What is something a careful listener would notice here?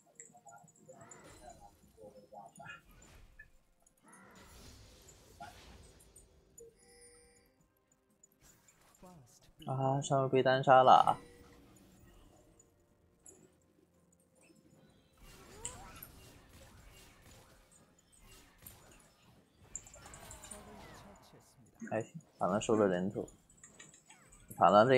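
Game effects clash and whoosh during a fight.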